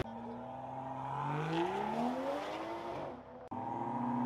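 Car engines roar and rise in pitch as cars accelerate away.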